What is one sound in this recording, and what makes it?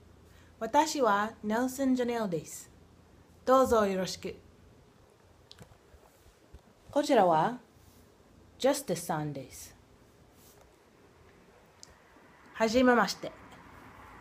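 A young woman speaks with animation close to a microphone, in short bursts.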